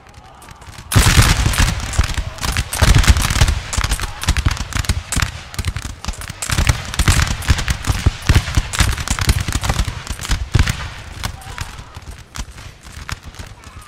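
A volley of musket fire crackles and booms across an open field.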